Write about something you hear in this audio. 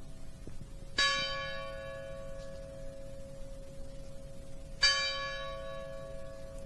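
A church bell strikes loudly and rings on.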